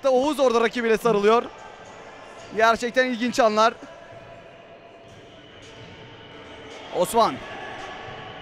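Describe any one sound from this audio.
Spectators chant in unison in an echoing indoor hall.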